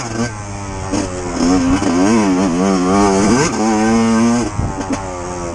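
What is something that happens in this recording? A dirt bike engine revs up and down, rising and falling in pitch.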